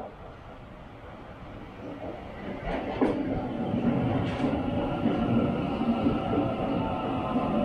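A train rumbles in alongside a platform and slows to a stop.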